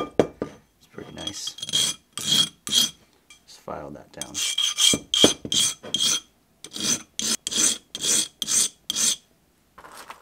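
A piece of glass rasps in quick strokes against a sanding block.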